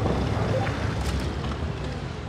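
A tank gun fires with a booming blast.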